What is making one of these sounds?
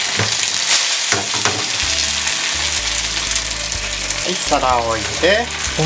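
Dumplings sizzle loudly in hot oil.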